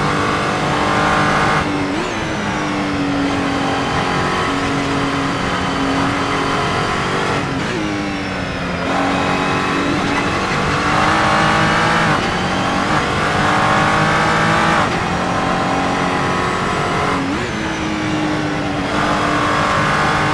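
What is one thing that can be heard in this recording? A racing car engine roars, revving up and dropping sharply at each gear change.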